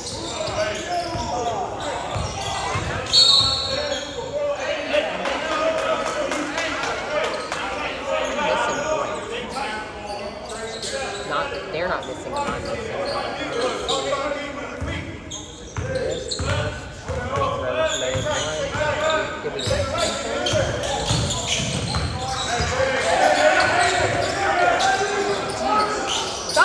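Young players call out to each other in a large echoing gym.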